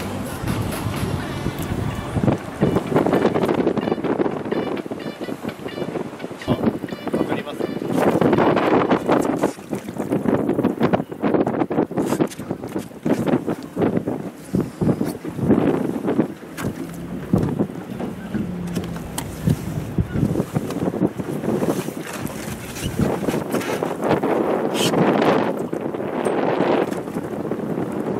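Waves slap against a boat's hull.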